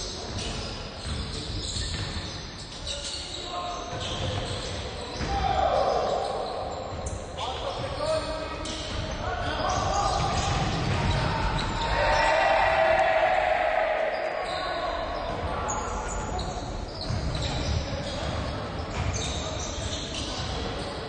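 Basketball players' shoes squeak on a wooden court in a large echoing hall.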